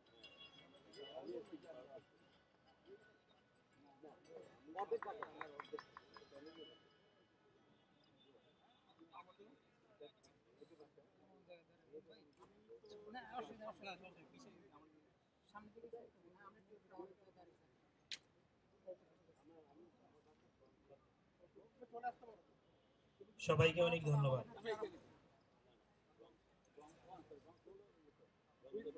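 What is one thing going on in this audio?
A man speaks into a microphone over loudspeakers, heard outdoors.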